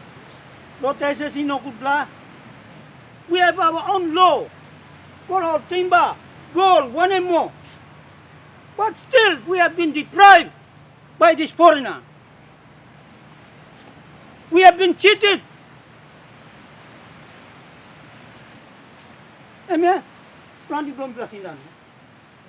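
An elderly man speaks with feeling, close by, in short bursts.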